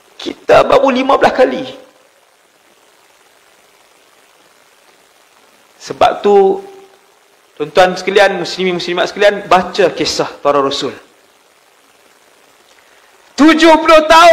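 A man speaks calmly into a headset microphone, with pauses.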